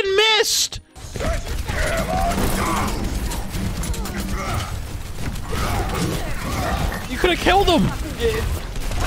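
Gunfire and blasts from a video game crackle rapidly.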